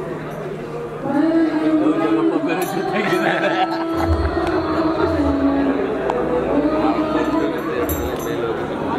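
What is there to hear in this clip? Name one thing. A man greets another man warmly and laughs.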